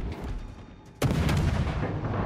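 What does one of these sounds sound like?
Large guns fire with a heavy boom.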